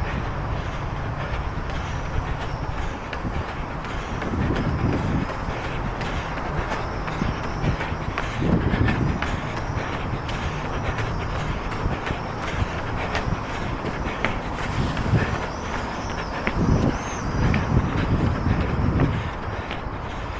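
Footsteps tap on stone paving at a steady walking pace.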